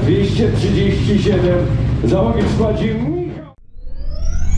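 A man speaks loudly through a loudspeaker outdoors.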